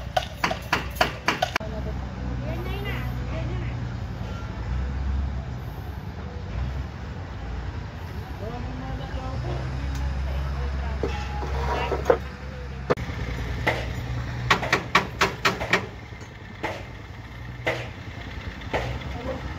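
Metal rods clank and knock together.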